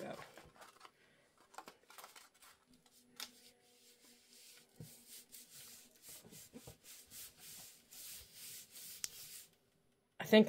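Paper rustles and crinkles softly as hands fold and press it.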